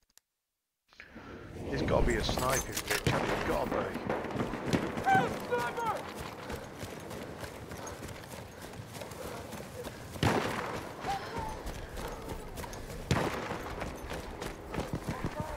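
Wind and battle noise rumble steadily outdoors.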